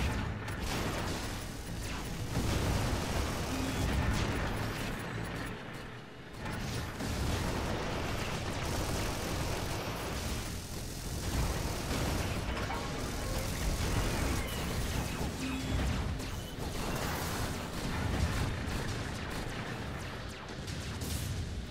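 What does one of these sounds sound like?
Video game explosions and gunfire rumble and crackle.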